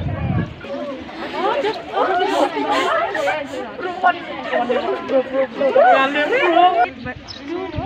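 Teenage girls chatter and talk nearby.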